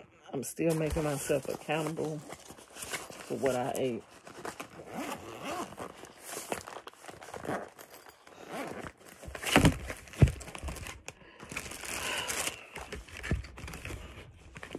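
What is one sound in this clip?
Fabric and a plastic wrapper rustle as it is handled.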